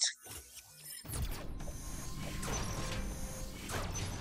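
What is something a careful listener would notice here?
Electronic game sound effects rumble and beep.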